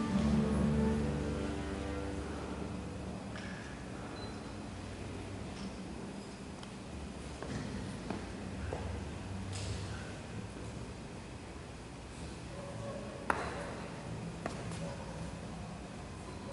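An orchestra plays in a large echoing hall, loud at first and then softly.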